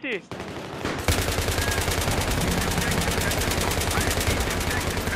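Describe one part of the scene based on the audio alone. An automatic rifle fires in a rapid, steady stream of shots.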